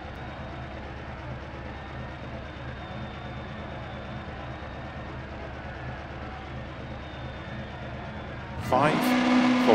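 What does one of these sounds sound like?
A rally car engine idles quietly.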